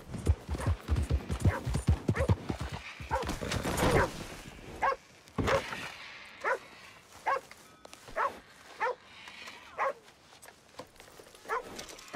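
A horse's hooves clop slowly on dirt.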